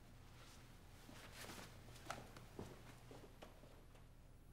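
An elderly man speaks in a low, calm voice.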